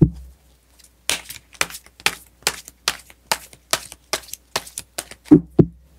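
Cards riffle and snap quickly in a steady rhythm as a deck is shuffled.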